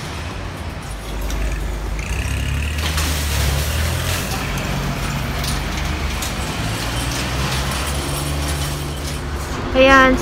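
A tractor engine rumbles nearby as it drives off.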